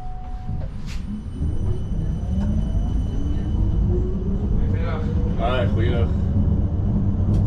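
Tram wheels squeal on a curve.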